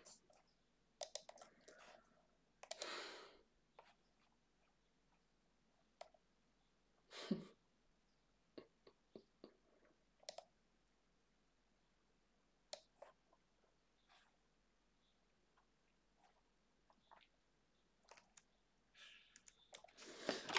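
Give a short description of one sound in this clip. A woman types on a keyboard.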